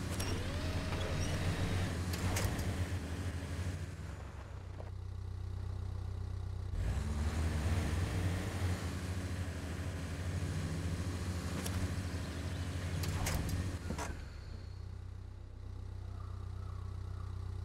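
A winch whirs as it pulls a truck.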